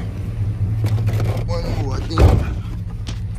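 A car door opens with a click and a thud.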